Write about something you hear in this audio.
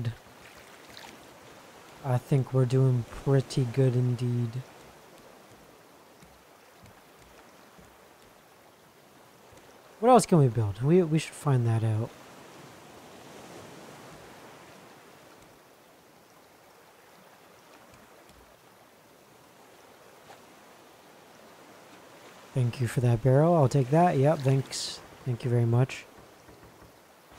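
Waves wash gently around a raft.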